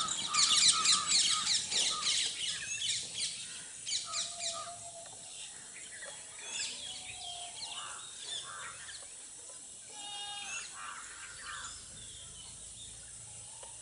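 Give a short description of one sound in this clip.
A bird chirps rapidly and shrilly nearby.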